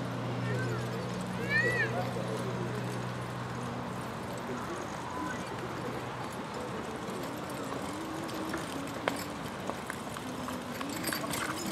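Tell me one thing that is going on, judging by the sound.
Carriage wheels rumble over the ground.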